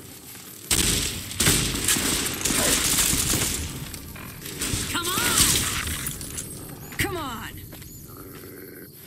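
Gunshots fire in loud, rapid bursts.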